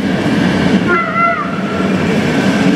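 Train wheels squeal briefly on the rails.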